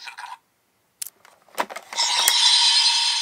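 A plastic card deck clicks out of a toy belt.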